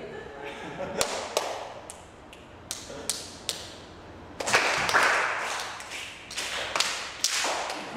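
A young girl claps her hands.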